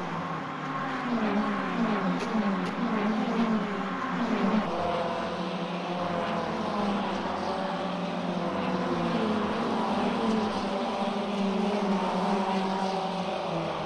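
A racing car engine roars through loudspeakers, revving up and dropping as it shifts gears.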